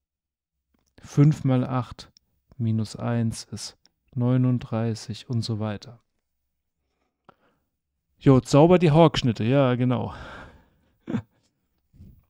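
A middle-aged man speaks calmly and closely into a microphone, pausing now and then.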